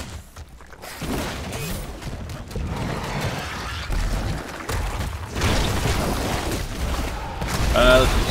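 Fantasy battle sound effects clash and crackle in bursts.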